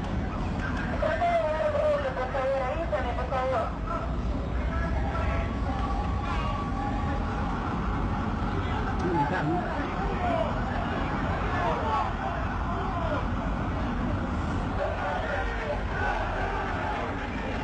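Men shout excitedly outdoors.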